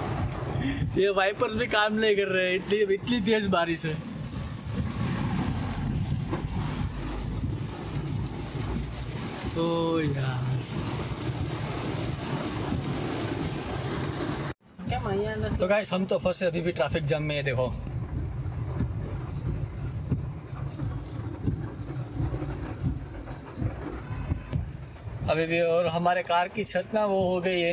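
Heavy rain drums steadily on a car's roof and windscreen.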